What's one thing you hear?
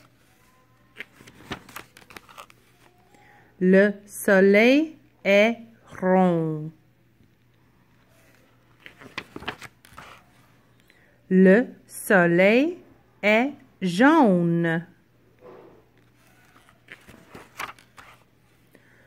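A stiff paper page turns and rustles.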